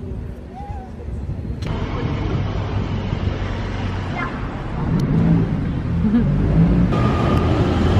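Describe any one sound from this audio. City traffic rumbles along a street.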